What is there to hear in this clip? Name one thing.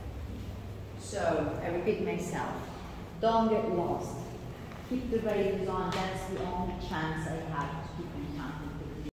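A young woman speaks nearby in an echoing hall.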